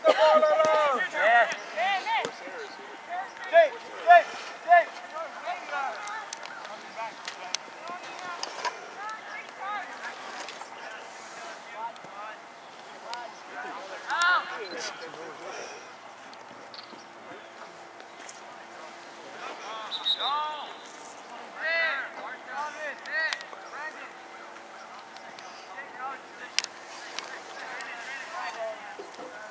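Young players shout and call to each other from across an open field.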